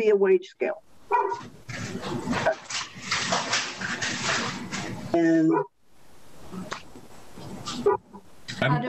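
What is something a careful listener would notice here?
An elderly woman speaks calmly through an online call.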